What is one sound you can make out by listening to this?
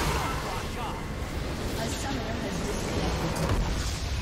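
Spells and weapons clash and blast in a fierce game battle.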